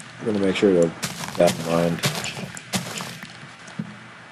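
A shovel digs into dirt with crunching thumps.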